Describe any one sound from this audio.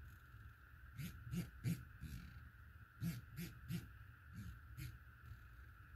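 A scope turret clicks as it is turned by hand.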